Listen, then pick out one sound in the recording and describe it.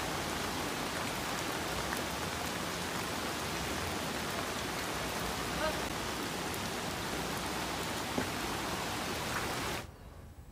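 Floodwater rushes and churns steadily.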